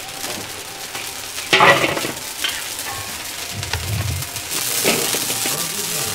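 Tomatoes drop with a soft thud into a metal colander.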